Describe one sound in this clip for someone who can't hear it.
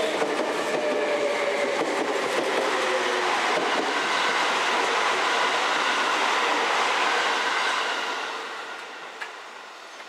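A second train rumbles past nearby and fades away.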